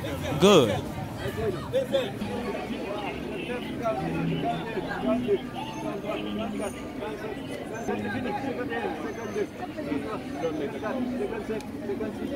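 A crowd of young men and women chatter and call out nearby, outdoors.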